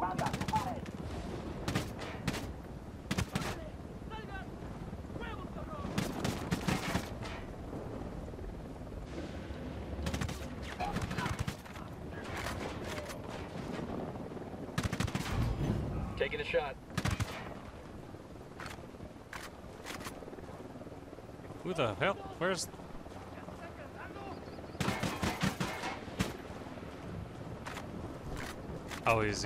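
Suppressed gunshots fire in short bursts.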